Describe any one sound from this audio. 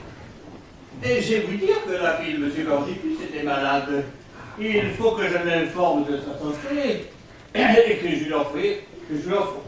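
An elderly man speaks with expression on a stage.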